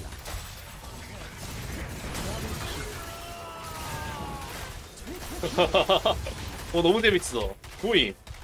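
Magic spells crackle and burst in a fast game battle.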